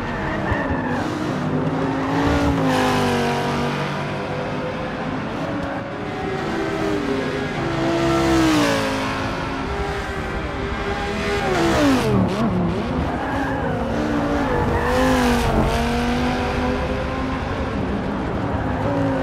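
A racing car engine roars and revs up and down as the car speeds past.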